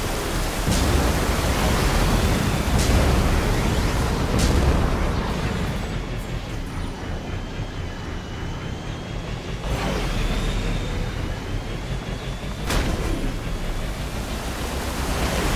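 A hovering craft's engines roar steadily.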